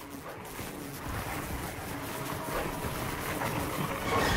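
Zombies growl and groan up close.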